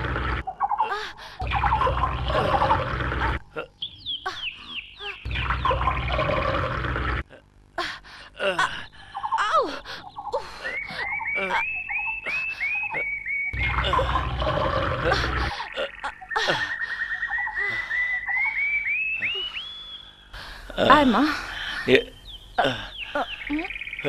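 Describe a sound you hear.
A woman sings.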